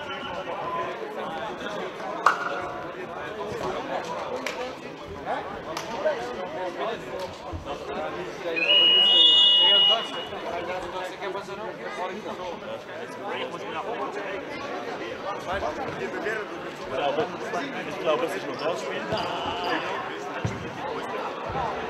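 Spectators chatter and call out in a large echoing hall.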